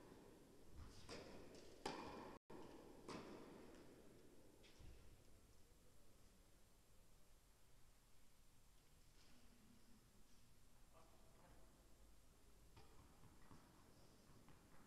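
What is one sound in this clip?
Tennis balls are struck with rackets, each hit a sharp pop in a large echoing hall.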